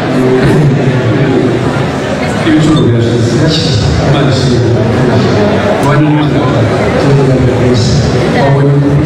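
A young man speaks close to a phone microphone in a relaxed, friendly way.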